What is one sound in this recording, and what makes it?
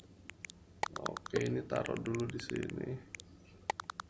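A young man speaks briefly and casually into a close microphone.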